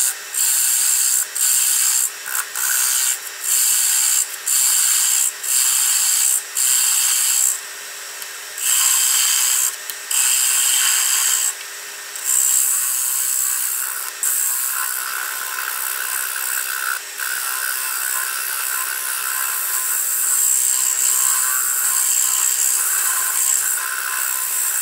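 A gouge scrapes and shaves against spinning wood in repeated rasping bursts.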